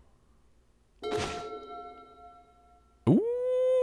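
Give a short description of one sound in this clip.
A digital card game plays a bright chime.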